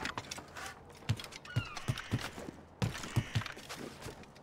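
Footsteps thud on a wooden roof.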